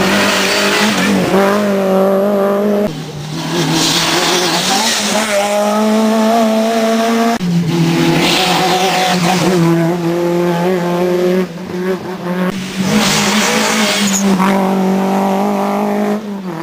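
Car engines drop in pitch and rise again as the drivers shift gears.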